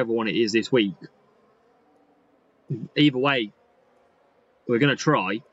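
A young man talks in short bursts, close to a microphone.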